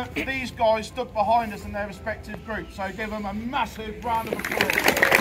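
A man speaks loudly outdoors, addressing a group.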